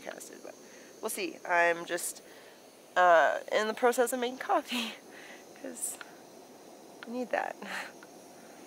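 A young woman talks cheerfully close by.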